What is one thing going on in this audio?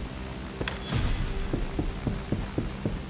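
Footsteps thud steadily across a hard floor.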